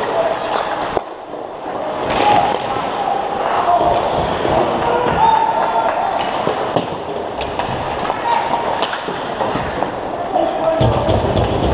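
Hockey sticks click against the puck and each other.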